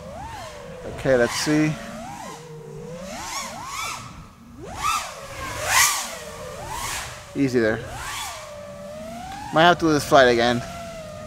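A small drone's motors whine steadily, rising and falling sharply in pitch as it darts about.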